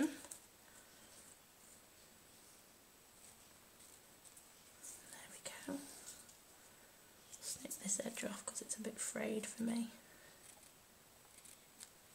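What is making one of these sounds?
Scissors snip through ribbon.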